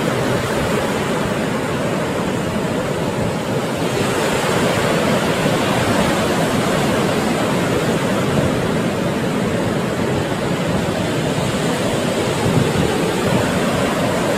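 Ocean waves crash and roll steadily.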